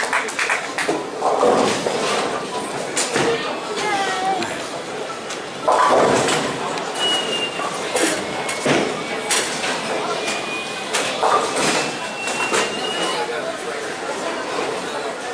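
Bowling pins crash and clatter in a large echoing hall.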